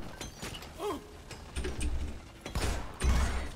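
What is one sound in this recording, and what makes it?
A gun fires rapid bursts.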